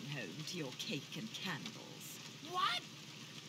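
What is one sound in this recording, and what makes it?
A woman speaks in a teasing, confident voice.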